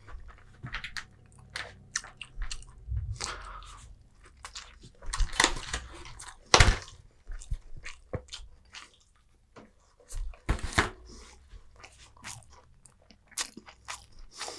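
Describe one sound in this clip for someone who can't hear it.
Chopsticks click and scrape against plates close by.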